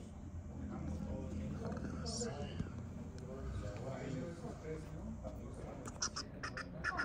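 Adults talk quietly nearby in a room.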